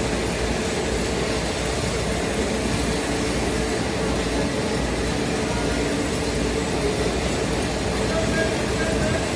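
A train's engine hums steadily nearby.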